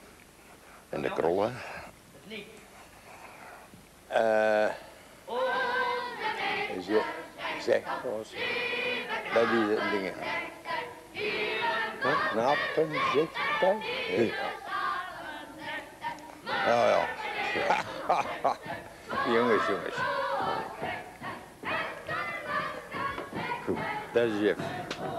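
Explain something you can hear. An elderly man speaks calmly and at length into a microphone nearby.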